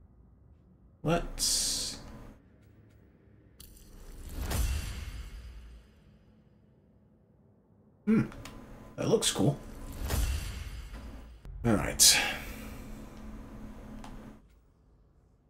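Game menu sounds chime and whoosh as options change.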